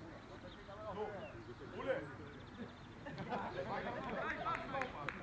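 Several adult spectators talk and call out nearby, outdoors.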